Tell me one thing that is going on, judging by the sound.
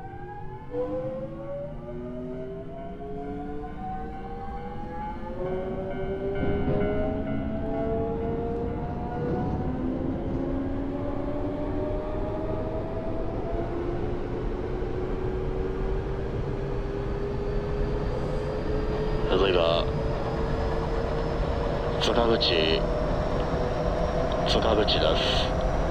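Train wheels rumble along the rails.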